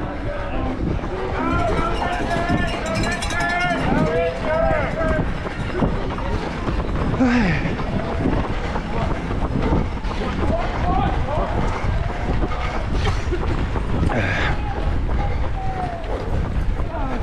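Spectators cheer and shout along a street.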